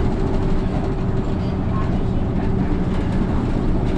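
A truck passes close by in the opposite direction.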